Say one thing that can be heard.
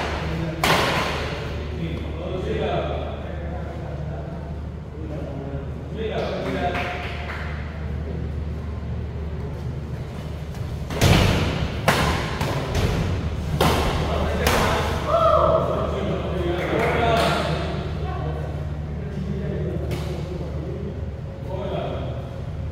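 Rackets strike a shuttlecock with sharp smacks.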